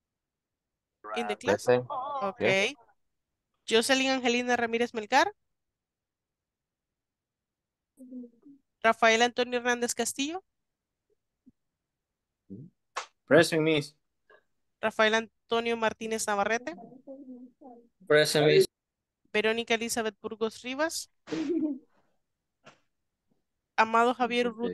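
A young woman speaks with animation over an online call, in bursts with pauses.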